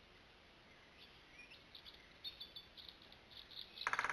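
A small bird chirps in quick bursts.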